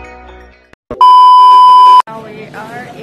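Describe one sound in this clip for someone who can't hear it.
A steady test tone beeps loudly.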